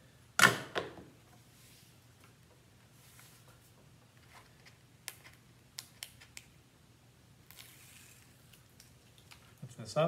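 Stiff paper board rustles and taps as hands slide it across a table.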